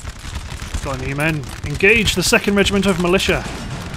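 Musket volleys crackle and boom in the distance.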